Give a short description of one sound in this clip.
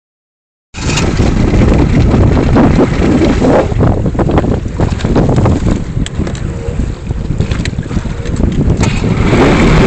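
A motorboat engine rumbles steadily.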